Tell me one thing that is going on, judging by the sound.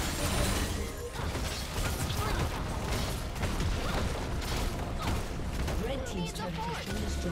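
Spell effects and attacks crackle and boom in a game battle.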